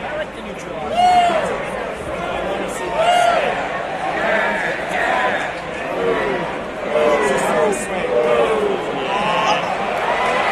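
Spectators shout and whistle loudly nearby.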